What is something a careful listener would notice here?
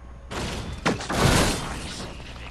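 Gunshots ring out with a short echo.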